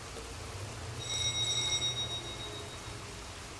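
A doorbell chimes.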